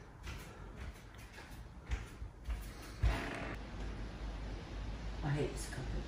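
Footsteps cross a wooden floor.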